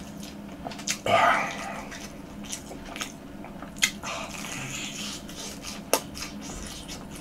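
A young man chews and crunches on crispy fried food close to a microphone.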